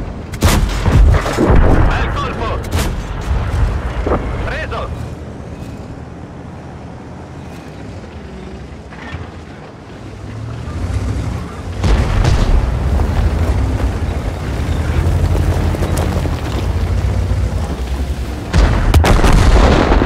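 Shells explode with heavy booms.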